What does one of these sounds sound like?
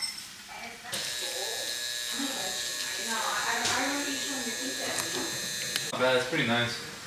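Water from a tap runs into a bowl.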